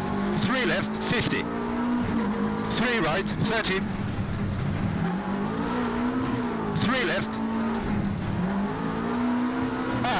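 A car engine drones and revs up and down steadily.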